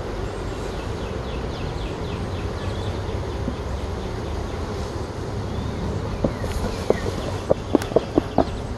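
Honeybees buzz around an open hive.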